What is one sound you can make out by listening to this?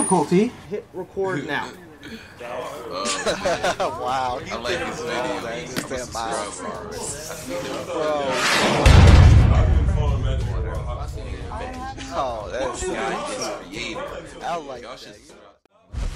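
Several young men laugh and talk excitedly over online calls.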